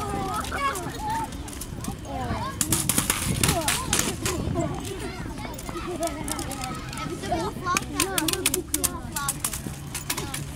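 Soldiers slap and strike their rifles in a drill outdoors.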